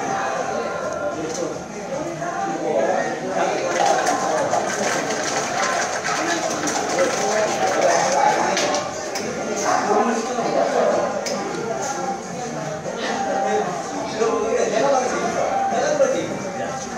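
A spoon scrapes and taps inside a paper cup.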